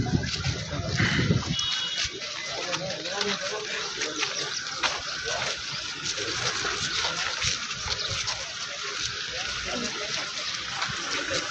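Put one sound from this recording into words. A crowd of men talks and murmurs loudly close by, outdoors.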